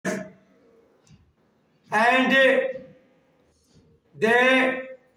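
An elderly man speaks loudly nearby in short bursts.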